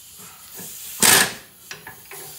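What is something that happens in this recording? A metal tool clanks sharply against a car part.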